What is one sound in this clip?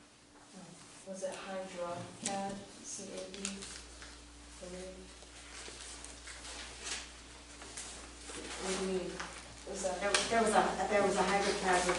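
A man speaks calmly in a room.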